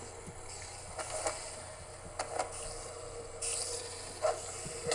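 A sword swishes and strikes with sharp hits.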